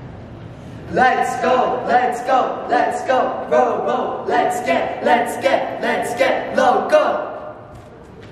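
A young woman and a young man call out with animation, close by.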